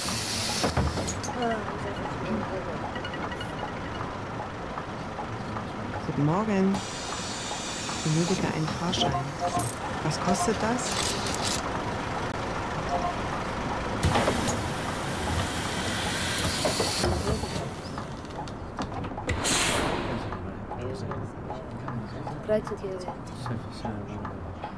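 A bus engine hums steadily as the bus drives along a street.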